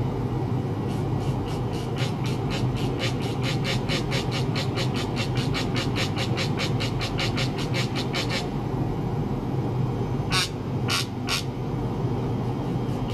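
Electronic equipment hums steadily and low.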